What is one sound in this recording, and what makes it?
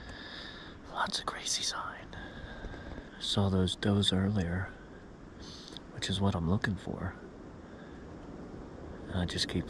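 A middle-aged man speaks quietly and close by.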